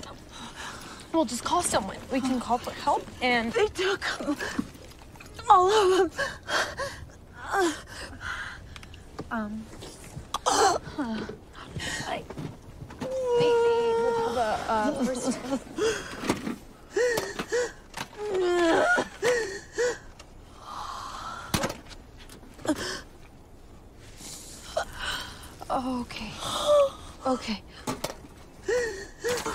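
A young woman speaks urgently and quietly nearby.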